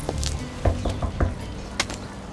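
Knuckles knock on a wooden door.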